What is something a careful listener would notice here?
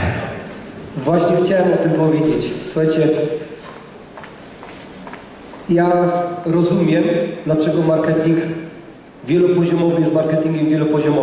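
A woman speaks with animation through a loudspeaker in a large room.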